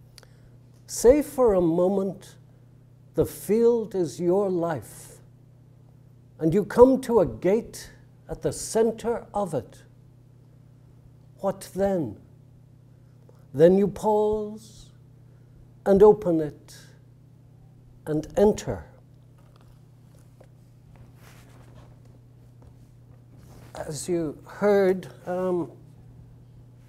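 An elderly man speaks slowly and calmly, with long pauses, through a microphone.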